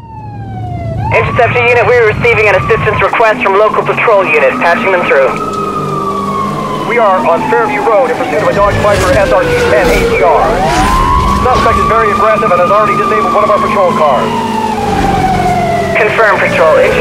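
Police sirens wail, rising and falling.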